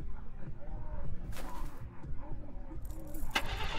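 A key turns in a vehicle's ignition.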